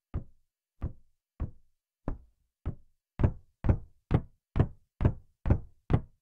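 Footsteps thud on hollow wooden planks, quickening as they go.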